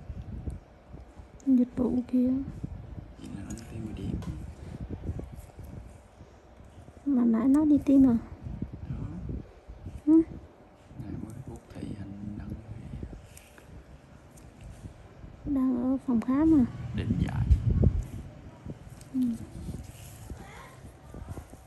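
Latex gloves rub softly against skin.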